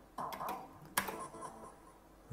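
A button on a slot machine clicks once.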